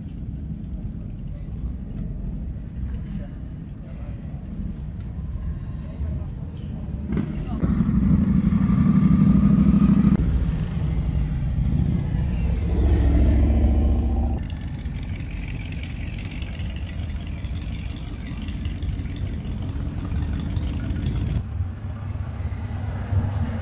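Outdoors, a low rumble of engines goes on in the background.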